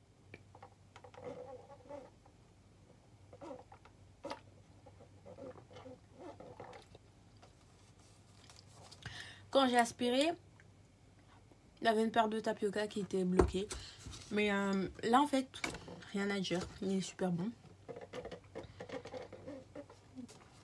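A young woman sips a drink through a straw.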